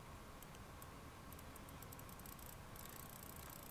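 A combination dial on a safe clicks as it turns.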